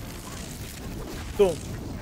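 Electricity crackles and sparks.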